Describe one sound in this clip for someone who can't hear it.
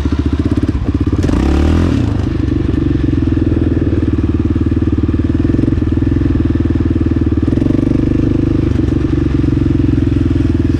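A quad bike engine roars loudly close by, revving up and down.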